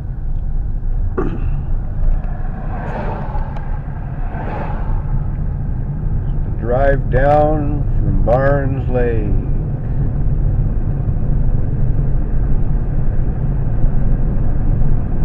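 A car engine hums and tyres rumble steadily on the road, heard from inside the car.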